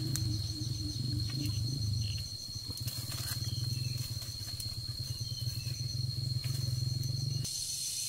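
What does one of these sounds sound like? Leaves rustle as a boy pulls at branches.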